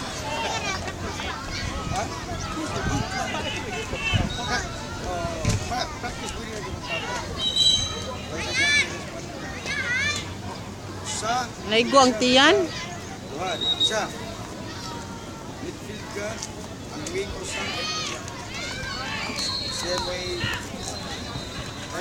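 A crowd of young people shouts and cheers across an open field outdoors.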